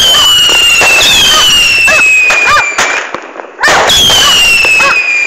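Fireworks crackle and pop in sharp bursts.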